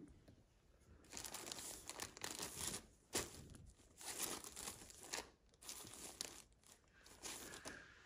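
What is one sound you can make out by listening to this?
Plastic packaging rustles and crinkles as it is handled.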